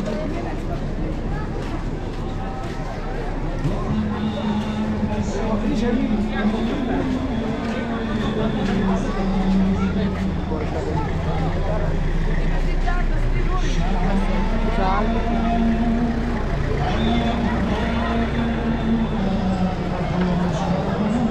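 Footsteps shuffle on a paved street.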